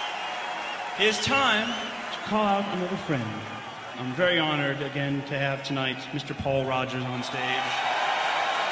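A man speaks to a crowd through a microphone and loudspeakers.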